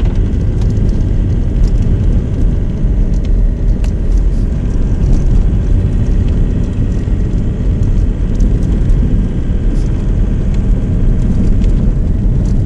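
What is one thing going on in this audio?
A car engine rumbles steadily from inside the car.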